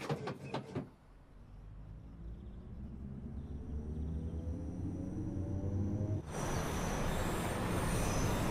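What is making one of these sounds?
An electric train's motor whines and rises steadily in pitch as the train picks up speed.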